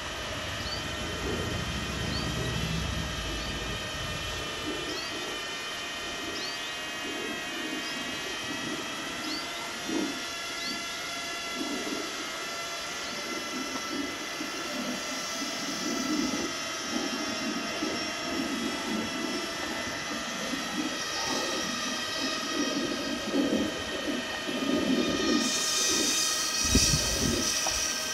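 A small electric vehicle motor whines steadily as it rolls along.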